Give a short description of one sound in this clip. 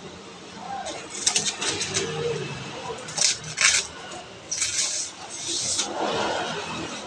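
Plastic wrapping crinkles and rustles under a hand.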